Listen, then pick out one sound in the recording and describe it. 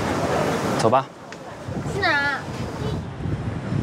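A young woman speaks, close by.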